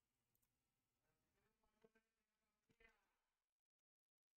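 A man speaks softly and calmly into a close microphone.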